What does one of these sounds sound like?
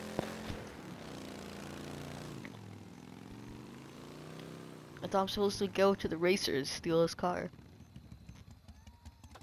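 A motorcycle engine hums and revs as it rides along.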